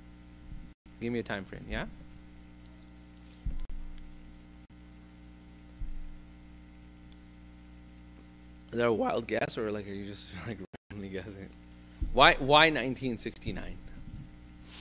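A man speaks calmly into a microphone, in short bursts with pauses.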